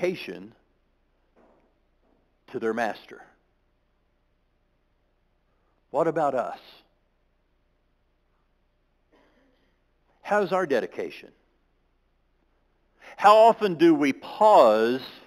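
A man speaks through a microphone in short phrases, echoing in a large hall.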